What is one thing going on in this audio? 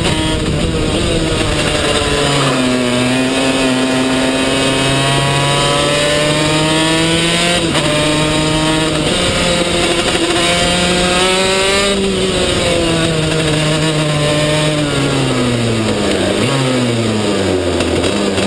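A kart engine buzzes loudly close by, its pitch rising and falling as it speeds up and slows down.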